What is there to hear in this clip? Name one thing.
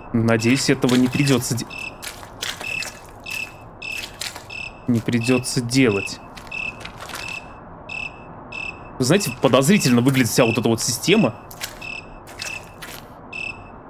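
Footsteps crunch steadily over dry leaves.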